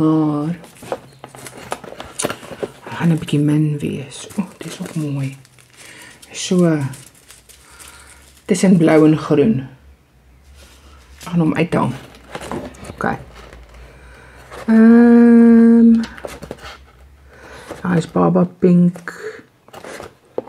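Paper cards rustle as fingers flip through them.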